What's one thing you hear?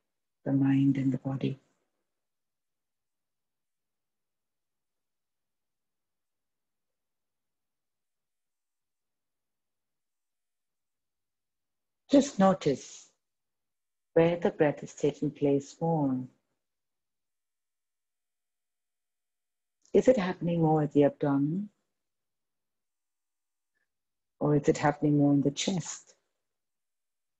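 A woman speaks calmly in short phrases, heard through an online call.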